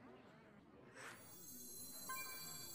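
A digital card game gives a short shimmering chime as a card is played.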